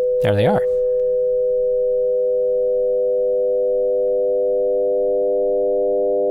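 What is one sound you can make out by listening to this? A synthesizer holds a steady, droning chord.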